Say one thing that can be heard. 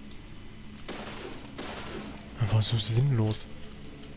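A pistol fires twice.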